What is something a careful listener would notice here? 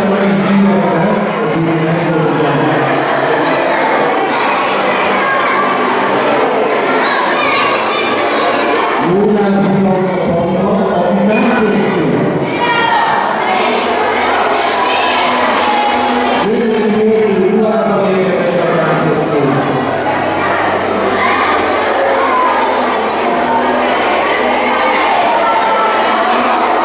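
A middle-aged man speaks through a microphone and loudspeakers in an echoing hall.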